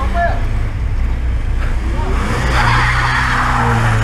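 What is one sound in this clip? A car drives off slowly.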